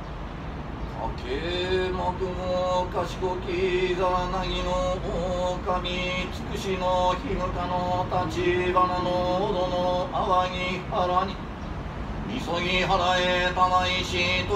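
A man chants a prayer aloud in a steady, sing-song voice close by.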